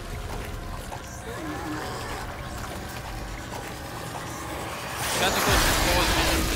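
A creature growls and groans.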